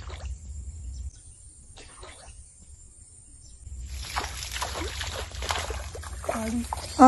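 Water splashes and churns close by.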